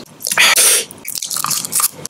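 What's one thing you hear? A wrapper crinkles close by.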